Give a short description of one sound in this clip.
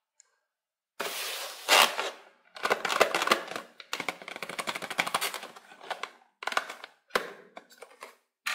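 Hands handle and rustle a cardboard box.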